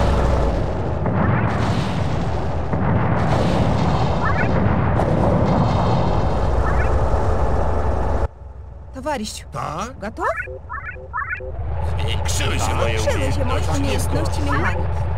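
Game vehicles rumble and clank as they move.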